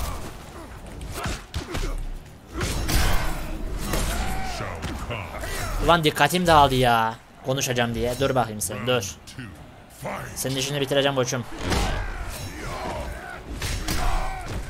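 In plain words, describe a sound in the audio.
Game fighters' blows thud and crack.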